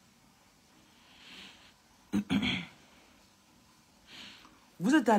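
A woman sighs and breathes heavily.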